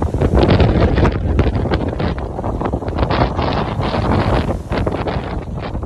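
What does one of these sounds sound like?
Wind buffets and rumbles loudly outdoors.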